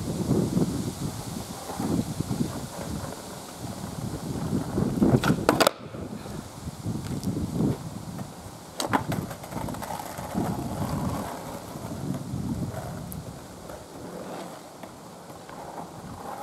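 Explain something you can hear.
Skateboard wheels rumble over rough asphalt.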